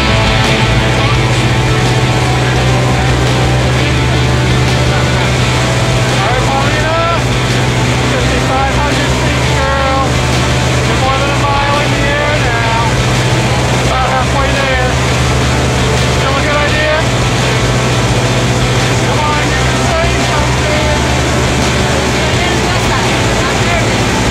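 An aircraft engine drones loudly and steadily inside a cabin.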